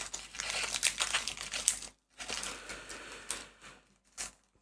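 Foil wrapping crinkles and tears as hands rip open a card pack.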